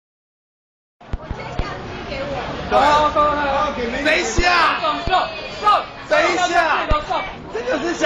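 A lively crowd chatters in the background.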